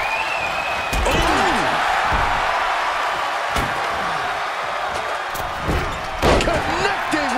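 Heavy thuds of bodies slamming onto a wrestling mat ring out.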